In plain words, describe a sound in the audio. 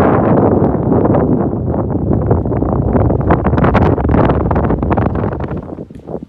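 Strong wind gusts roar across the microphone outdoors.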